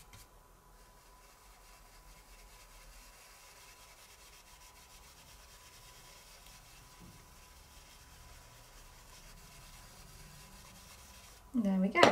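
A brush dabs softly on paper.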